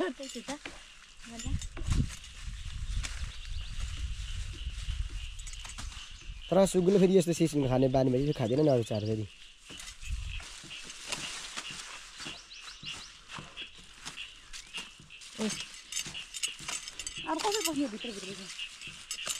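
Leafy stems rustle and snap as they are picked by hand.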